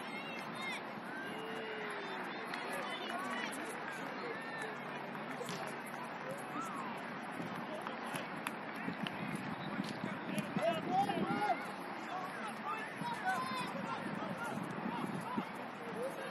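Young players shout and call out in the distance across an open field.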